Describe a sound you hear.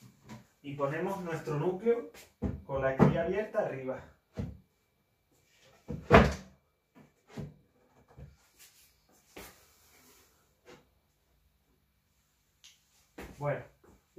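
Wooden boxes knock and thud as they are handled.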